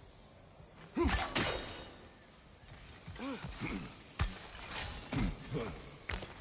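A spear thuds into rock.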